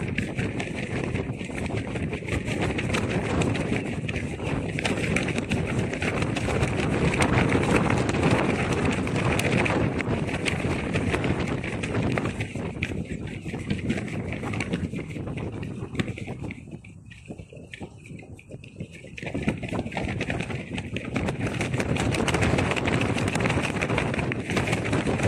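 Strong wind gusts roar across the microphone outdoors.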